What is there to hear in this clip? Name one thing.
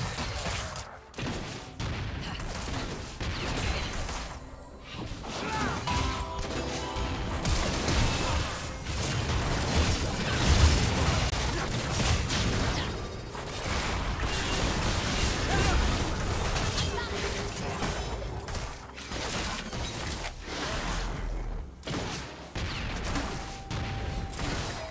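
Video game spell blasts and hits crackle and boom during a fight.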